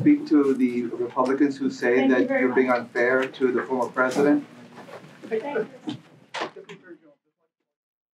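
A woman speaks into a microphone over loudspeakers.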